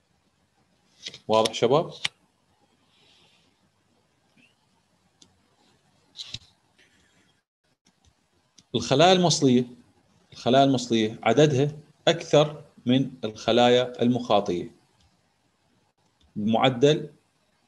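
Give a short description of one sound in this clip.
A man speaks calmly through a microphone, in short bursts with pauses.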